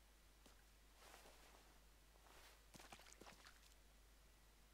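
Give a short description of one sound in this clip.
Gear rustles and a rifle clatters as it is picked up.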